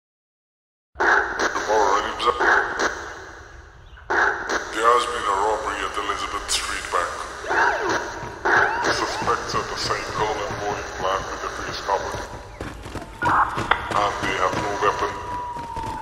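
A slowed-down song plays with heavy echo.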